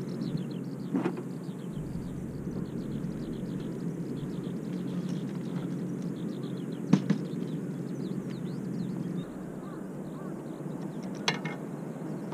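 Metal fishing gear clanks and knocks as it is set down.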